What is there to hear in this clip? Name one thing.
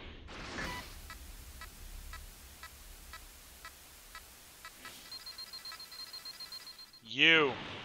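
Short electronic beeps tick at an even pace.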